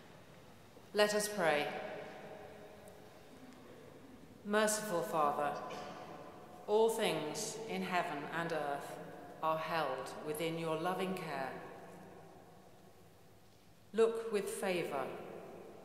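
A middle-aged woman reads out calmly through a microphone in a large echoing hall.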